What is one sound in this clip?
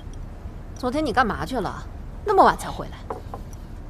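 A middle-aged woman asks questions in a scolding tone.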